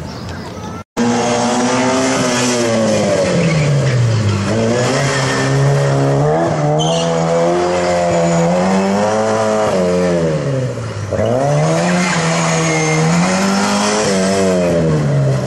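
A small car engine revs hard, rising and falling in pitch again and again.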